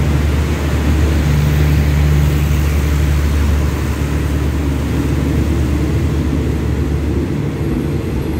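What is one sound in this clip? A train's diesel engine rumbles loudly nearby.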